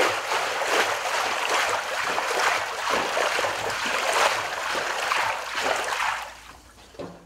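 Water churns and splashes in a tank as a rake stirs it.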